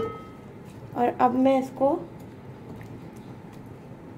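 A spatula scrapes and stirs food in a metal pot.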